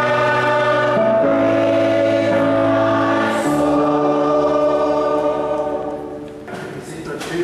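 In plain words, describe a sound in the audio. A congregation sings a hymn together in a large echoing hall.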